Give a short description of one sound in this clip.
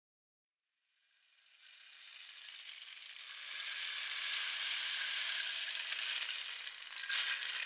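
A rain stick rustles with a soft, trickling hiss that swells louder.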